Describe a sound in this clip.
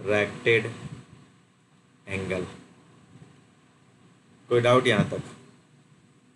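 A man speaks calmly and slowly into a close microphone, in short phrases with pauses.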